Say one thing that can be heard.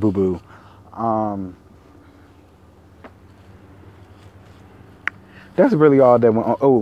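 A man speaks casually, close to the microphone, with pauses.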